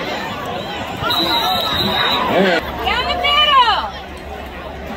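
Nearby spectators shout and call out with excitement.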